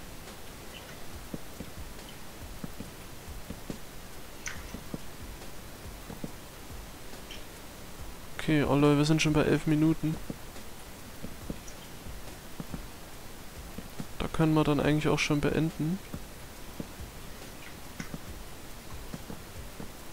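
Wooden blocks are set down with soft, short knocks.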